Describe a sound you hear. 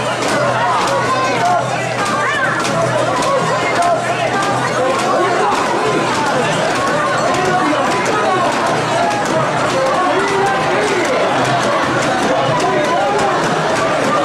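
A large crowd chants and shouts loudly outdoors.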